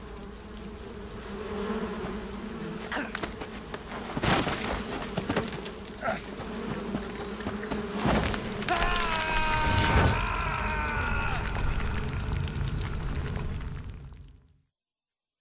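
A swarm of hornets buzzes loudly.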